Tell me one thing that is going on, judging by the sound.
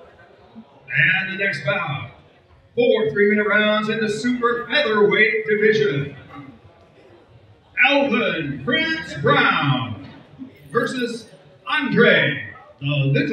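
A middle-aged man speaks into a microphone, heard through loudspeakers in an echoing hall.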